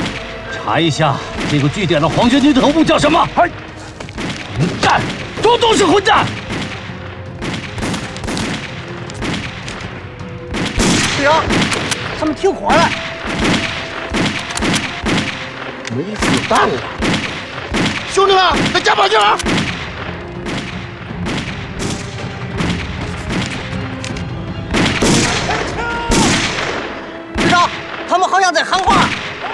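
Gunshots crack repeatedly outdoors.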